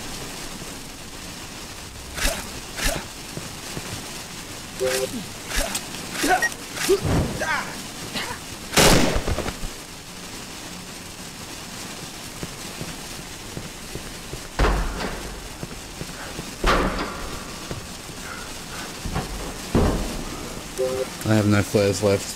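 A man talks into a microphone close by, with animation.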